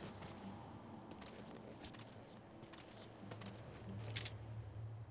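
A young man talks quietly into a microphone.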